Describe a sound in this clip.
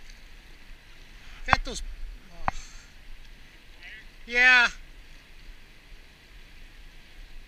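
Small waves lap against rocks at the water's edge.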